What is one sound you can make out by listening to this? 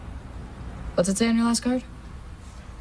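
A teenage girl speaks briefly, close by.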